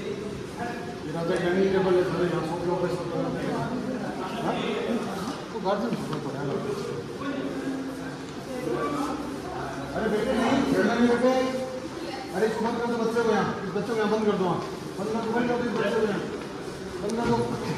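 A man speaks calmly close by in an echoing hall.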